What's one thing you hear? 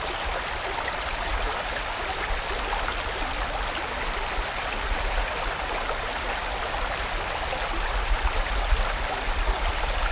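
A stream rushes and gurgles over rocks nearby.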